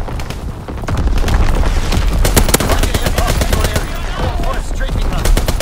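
A mounted machine gun fires in rapid bursts.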